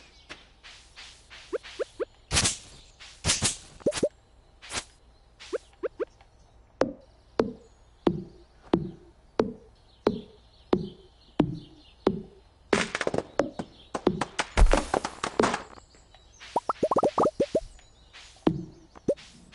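Quick swishing cuts slice through weeds in short bursts.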